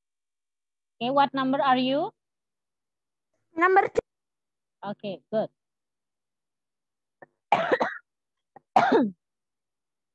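A young child speaks over an online call.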